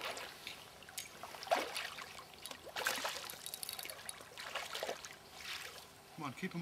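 Water ripples and laps gently.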